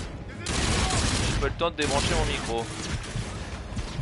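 Gunfire rattles rapidly at close range.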